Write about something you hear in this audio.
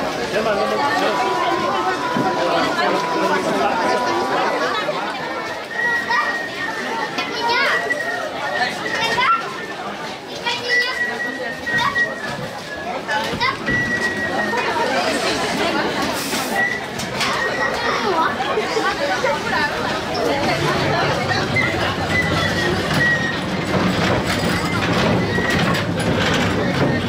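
A crowd of women and men chatter outdoors.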